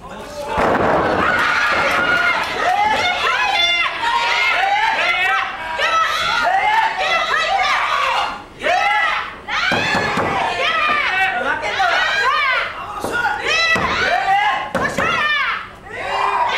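A young woman cries out and screams in strain, close by.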